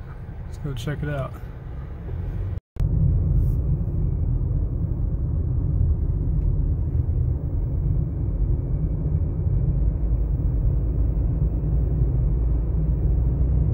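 A car drives along a road with a steady low rumble.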